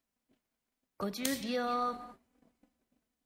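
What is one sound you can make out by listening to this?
A short chime rings out once.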